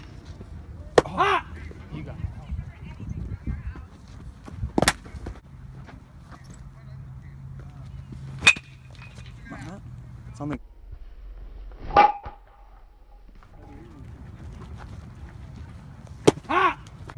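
A baseball smacks sharply into a catcher's mitt, again and again.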